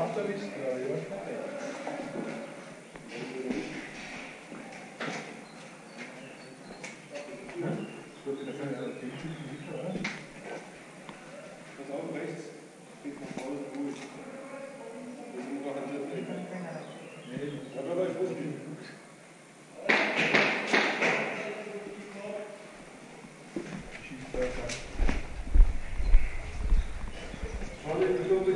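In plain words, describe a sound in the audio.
Footsteps scuff on a hard floor.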